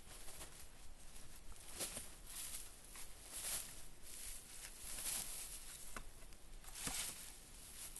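Branches and ferns rustle as a person pushes through them.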